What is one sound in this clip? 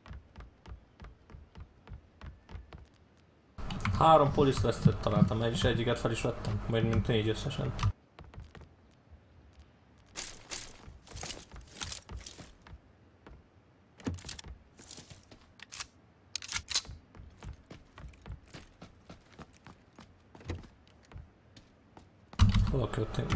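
Footsteps tap steadily across a wooden floor.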